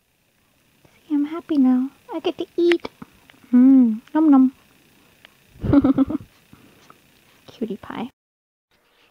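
A baby fusses and whimpers close by.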